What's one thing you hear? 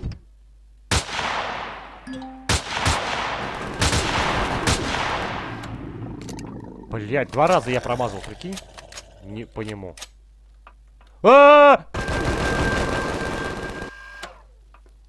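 A rifle fires rapid shots that ring out in a metal corridor.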